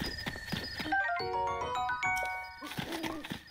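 A short bright jingle plays.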